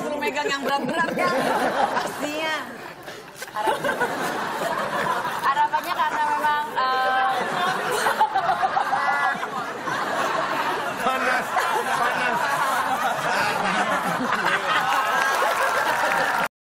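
A group of men and women talk and laugh loudly together over microphones.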